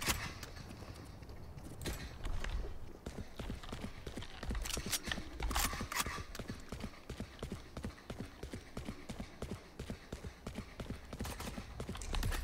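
Footsteps patter steadily on stone.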